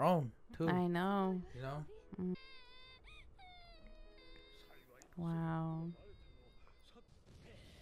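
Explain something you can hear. A young woman chuckles softly close to a microphone.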